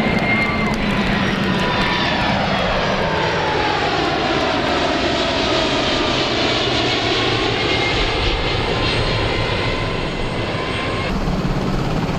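A jet airliner roars overhead as it climbs away, its whining engines sliding down in pitch.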